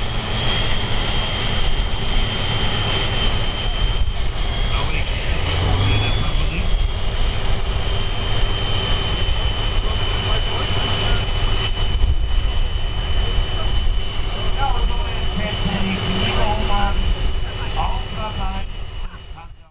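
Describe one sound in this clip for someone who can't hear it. A high whine runs steadily over the engine noise.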